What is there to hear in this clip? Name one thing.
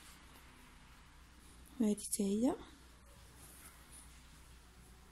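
Fabric rustles softly as a needle and thread pass through it.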